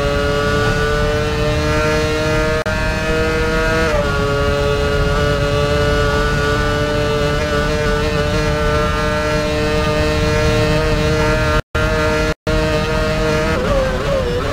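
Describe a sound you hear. A racing car engine screams at high revs, shifting gears.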